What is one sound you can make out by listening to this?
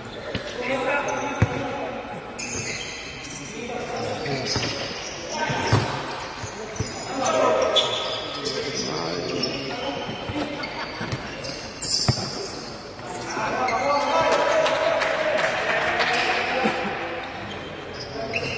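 Players and spectators shout and call out across a large echoing hall.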